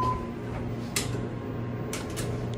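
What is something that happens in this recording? An elevator button clicks as it is pressed.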